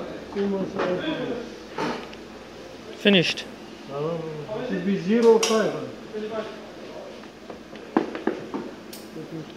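A tyre and metal wheel clunk as they are fitted onto a machine's shaft.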